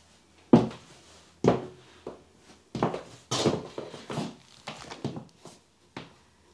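Heeled shoes knock on a hard floor.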